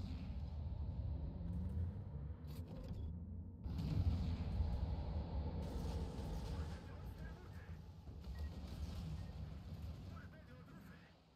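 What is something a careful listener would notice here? Heavy ship guns boom and rumble.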